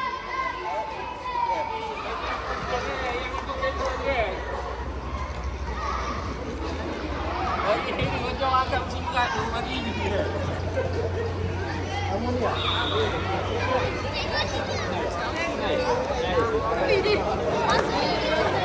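Children chatter and call out around the place.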